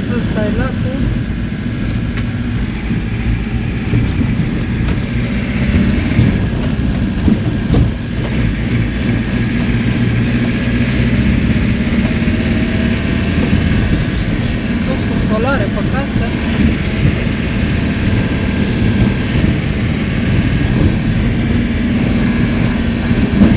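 Tyres crunch and bump over a rough dirt track.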